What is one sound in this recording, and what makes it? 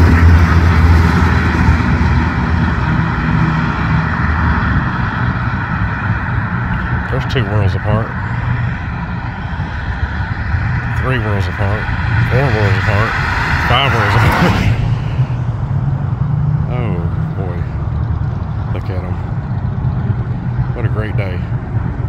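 Cars drive by on a road.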